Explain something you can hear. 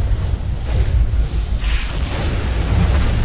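Thunder cracks loudly nearby.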